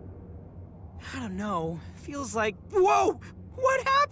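A young man exclaims in surprise, loud and close.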